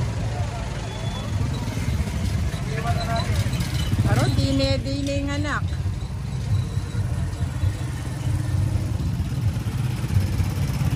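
Motorcycle engines rumble steadily as they pass close by.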